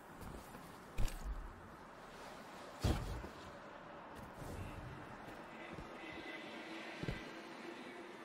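Heavy footsteps thud on a hard metal floor.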